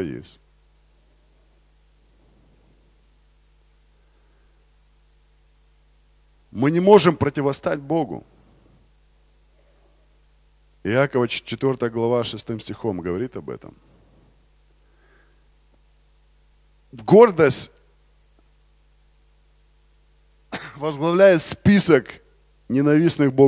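A man speaks into a microphone over loudspeakers, in bursts with long pauses.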